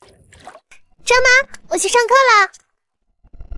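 A young girl speaks brightly and quickly.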